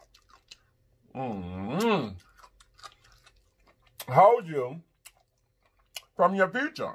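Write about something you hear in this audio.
A man chews food noisily close to a microphone.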